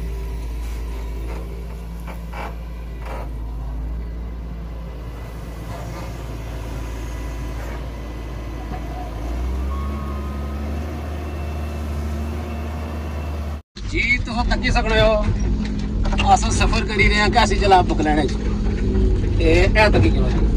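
A diesel excavator engine rumbles steadily close by.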